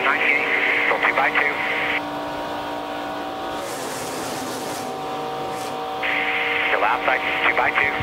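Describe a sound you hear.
Racing truck engines roar steadily at high speed.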